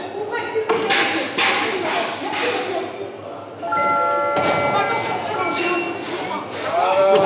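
A crowd bustles and murmurs in an echoing underground station.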